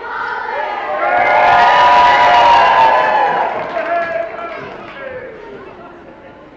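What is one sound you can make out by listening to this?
A crowd of young girls shouts and cheers in a large echoing hall.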